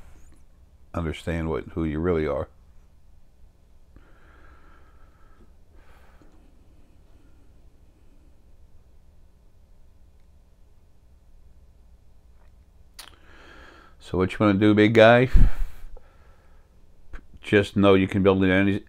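An older man speaks calmly and with pauses into a close microphone.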